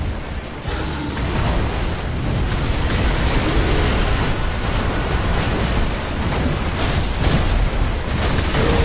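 Water splashes heavily as a huge beast thrashes through it.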